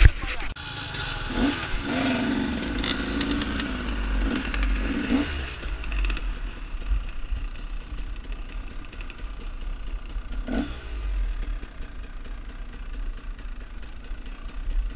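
Wind rushes past while the dirt bike rides over gravel.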